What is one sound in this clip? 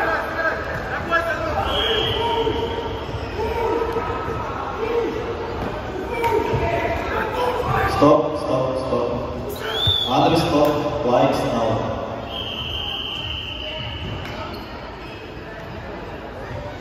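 Men and women in a crowd shout encouragement and call out in a large echoing hall.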